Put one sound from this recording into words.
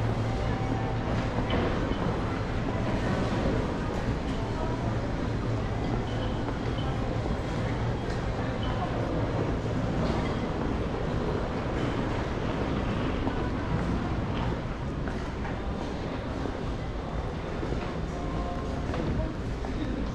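A crowd murmurs in a large, echoing indoor hall.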